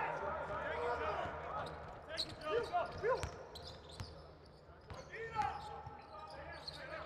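A crowd murmurs loudly in a large echoing arena.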